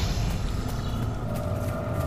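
Footsteps run quickly across grass.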